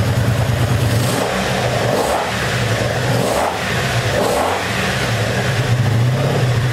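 A motorcycle engine revs up and down in several quick bursts.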